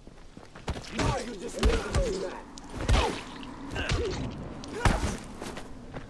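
Heavy blows thud against a body.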